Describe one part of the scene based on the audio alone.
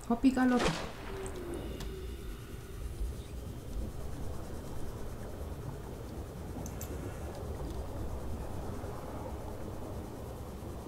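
A vehicle engine hums low and steady under water.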